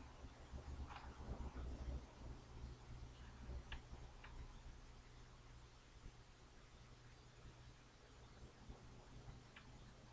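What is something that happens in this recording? A screwdriver clicks and scrapes against metal parts.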